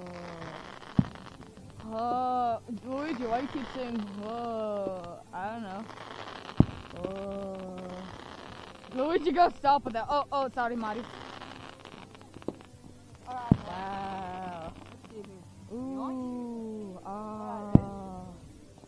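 Fireworks burst with loud, sharp bangs.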